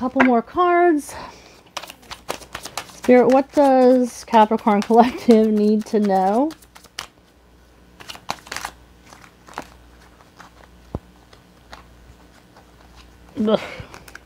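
Playing cards riffle and flick as they are shuffled.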